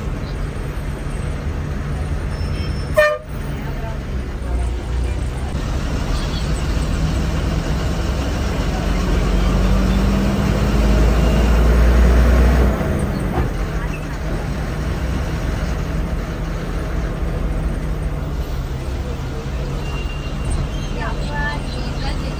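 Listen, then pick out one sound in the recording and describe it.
A vehicle's engine hums steadily while driving along a road.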